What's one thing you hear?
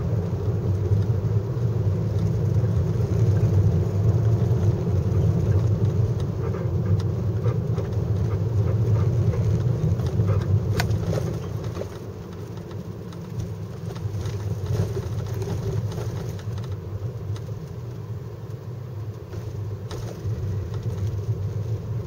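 A car's engine hums, heard from inside the car as it drives.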